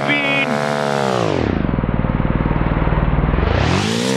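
A motorcycle roars past up close, its engine sound dropping in pitch.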